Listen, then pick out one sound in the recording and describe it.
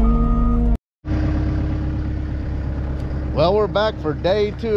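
A loader's engine idles nearby.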